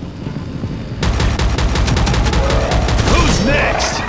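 A rapid burst of automatic gunfire rattles.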